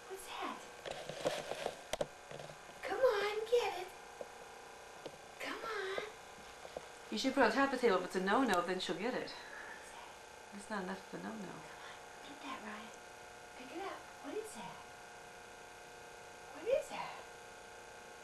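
A woman talks warmly and playfully to a toddler close by.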